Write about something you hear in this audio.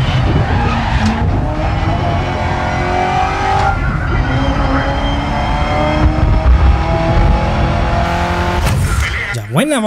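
A racing car engine roars at high revs, climbing in pitch as it speeds up.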